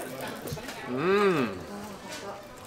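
A young woman hums with pleasure while eating.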